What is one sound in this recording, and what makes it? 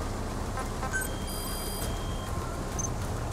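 Short electronic menu beeps chime.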